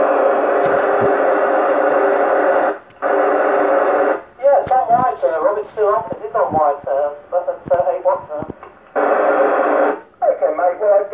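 A radio hisses with bursts of static.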